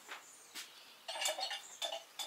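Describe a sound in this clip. Dishes clink and clatter on a table.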